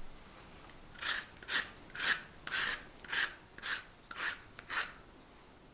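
A zester scrapes rhythmically across a lemon's peel.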